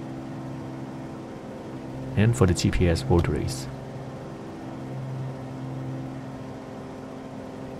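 A small aircraft's engine drones steadily.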